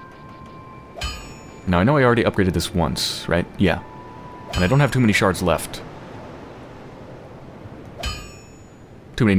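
A game menu gives a short soft chime as the selection moves.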